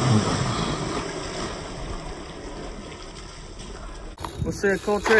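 Water splashes as children play in a pool.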